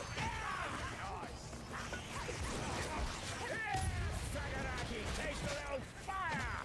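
Heavy melee blows strike with dull thuds.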